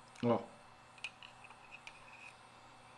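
Small metal parts click softly as they are handled.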